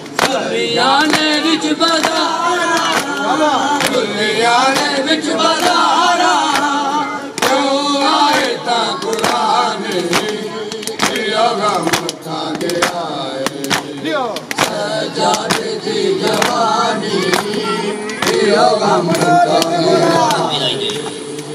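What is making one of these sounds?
Men beat their chests with their hands in a steady rhythm.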